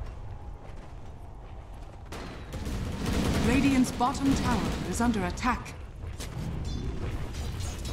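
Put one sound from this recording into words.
Magic spells crackle and blast during a fight.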